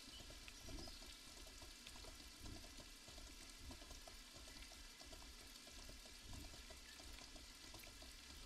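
A horse gallops with quick, steady hoofbeats thudding on soft ground.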